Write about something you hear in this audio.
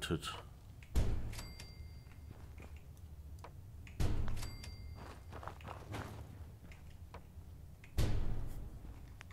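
Deep thuds sound as building pieces snap into place.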